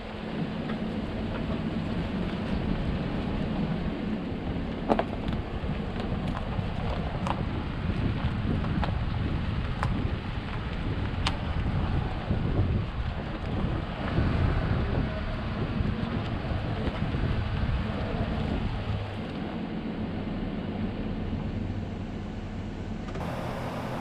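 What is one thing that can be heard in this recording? A vehicle engine rumbles steadily up close.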